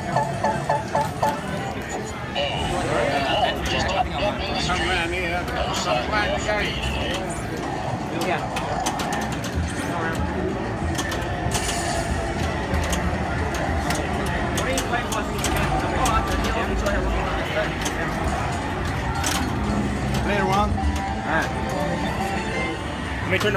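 A pinball machine plays electronic music and sound effects.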